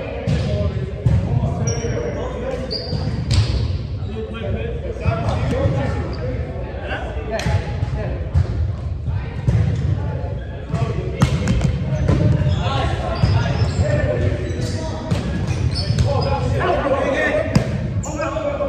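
A ball thumps off hands and feet.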